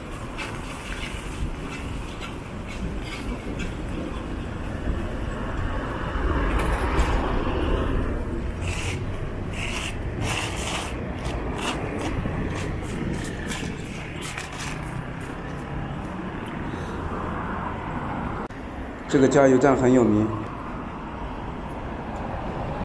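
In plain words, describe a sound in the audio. Traffic noise rumbles steadily from a moving vehicle on a road.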